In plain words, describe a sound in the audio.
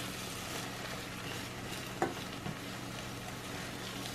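A fork scrapes across a frying pan.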